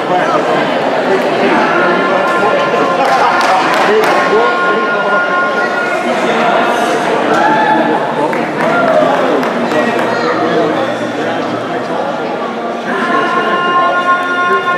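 Music plays over loudspeakers in a large echoing hall.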